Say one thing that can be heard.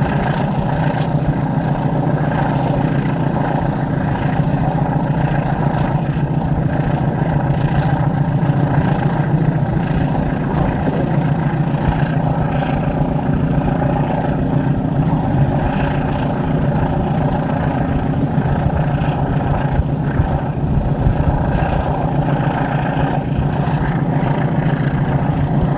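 A train rumbles steadily along the tracks, heard from a carriage window.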